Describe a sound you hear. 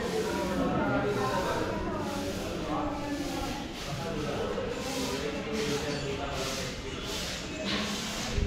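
Adult men and women chatter nearby indoors.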